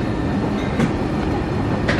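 A plastic snack bag crinkles in a hand.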